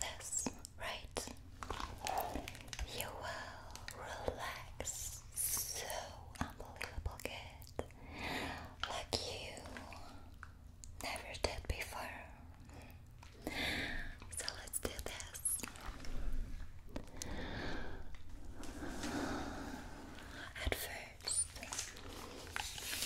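A young woman whispers softly into a microphone close up.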